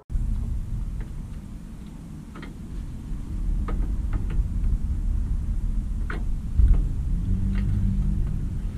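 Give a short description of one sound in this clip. A metal wire scrapes and clicks against a plastic toy wheel.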